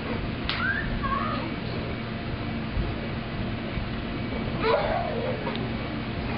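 Children squeal and shout playfully nearby.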